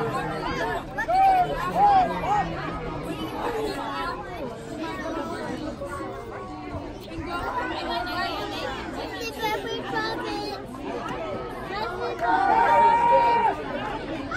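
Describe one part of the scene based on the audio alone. Spectators cheer and shout from across a field outdoors.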